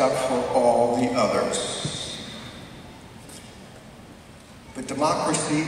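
A man speaks calmly over loudspeakers in a large echoing hall.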